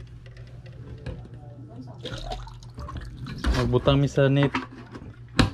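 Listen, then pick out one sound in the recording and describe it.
A plastic water jug and bottle knock and clatter as they are handled up close.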